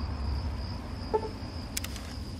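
A prompt pops up with a soft chime.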